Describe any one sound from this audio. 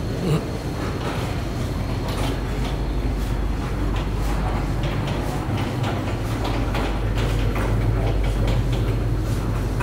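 Wheels of a cart roll across a hard floor.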